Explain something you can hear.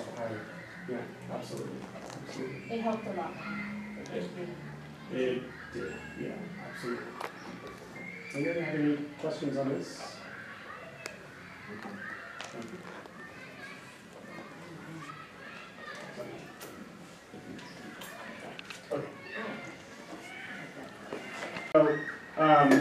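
A man speaks calmly at a distance in a quiet room.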